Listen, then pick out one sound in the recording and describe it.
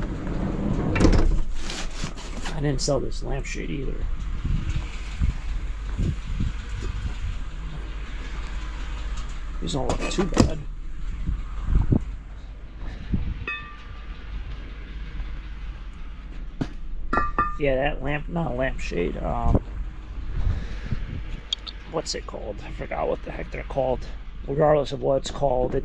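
Heavy metal brake parts clunk as they are picked up and set down.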